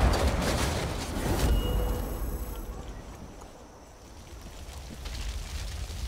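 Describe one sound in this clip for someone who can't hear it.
Fire crackles on a burning truck after the blast.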